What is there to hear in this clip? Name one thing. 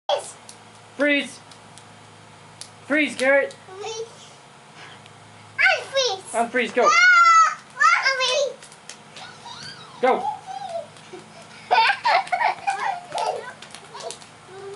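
Young girls talk and shout excitedly nearby.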